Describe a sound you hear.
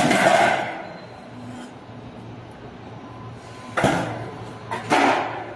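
A roll forming machine hums steadily.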